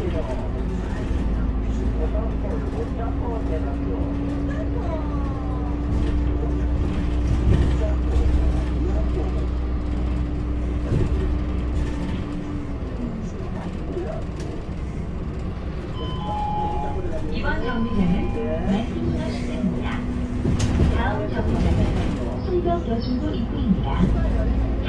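A bus engine hums and rumbles steadily while driving.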